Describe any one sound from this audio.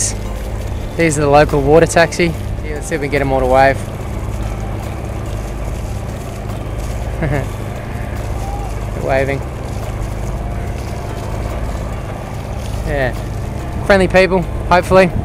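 Water washes against a moving boat's hull.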